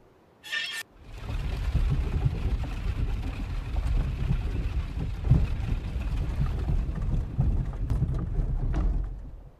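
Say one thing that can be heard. A heavy mechanism rumbles and grinds steadily.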